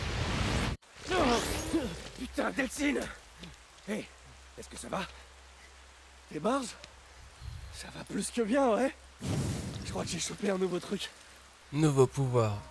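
A man speaks in a rough, tense voice.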